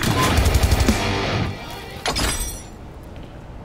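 Rapid gunfire bursts out loudly in a video game.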